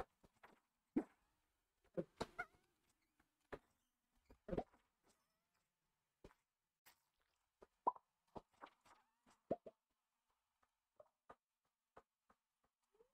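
A pickaxe strikes rocks with short, sharp knocks.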